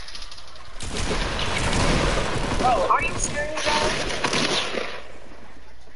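Gunshots crack in a quick burst.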